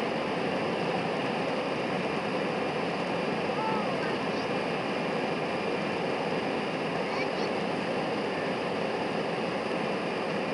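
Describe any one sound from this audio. Wheels rumble on a runway.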